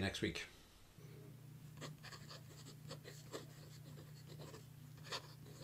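A pen scratches across paper.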